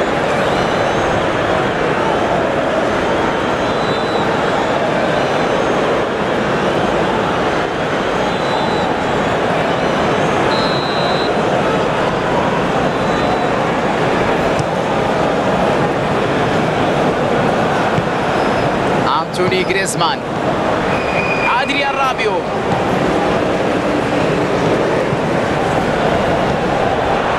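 A stadium crowd roars and chants steadily throughout.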